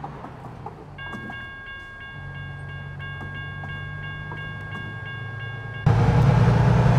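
A railway crossing bell rings with steady tones.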